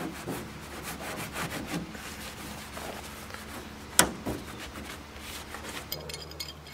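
A cloth rubs and scrubs against a metal boat hull.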